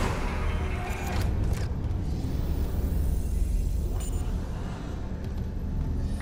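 A deep, steady mechanical rumble fills a large echoing space.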